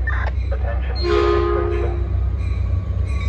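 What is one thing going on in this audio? A train horn sounds a loud blast.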